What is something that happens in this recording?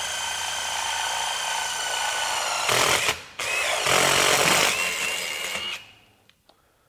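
A cordless drill whines steadily as it bores into metal.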